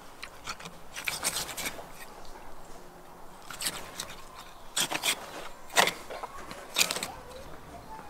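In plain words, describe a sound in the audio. A knife cuts and scrapes through an animal hide.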